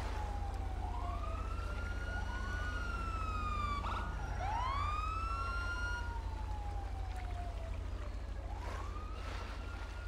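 Water sloshes and splashes as a man wades through it.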